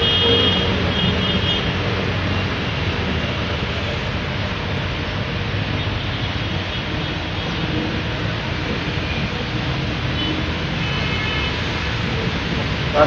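A train engine rumbles in the distance.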